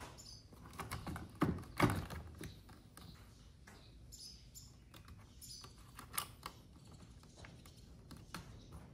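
A screwdriver scrapes against plastic.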